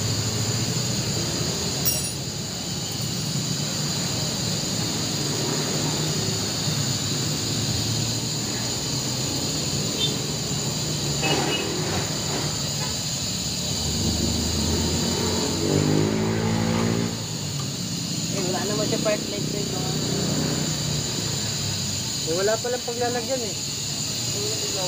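A small cap is screwed onto a tyre valve with faint scraping.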